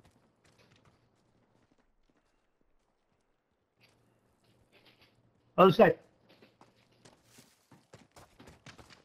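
Footsteps scuff over rubble and stone.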